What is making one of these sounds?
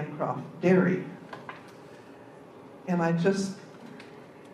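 An elderly woman speaks calmly into a microphone.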